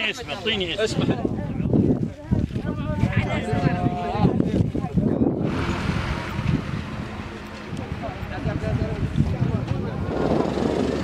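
Several people talk at once nearby.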